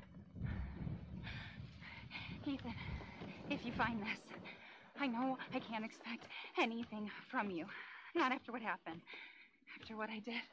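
A young woman speaks softly and closely.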